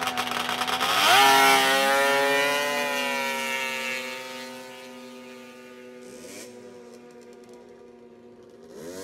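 A snowmobile engine revs up and roars away, fading into the distance.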